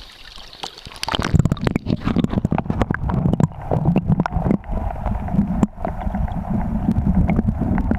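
Water rushes in a muffled, underwater rumble.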